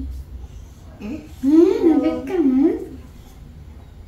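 A small child whines and cries out loudly.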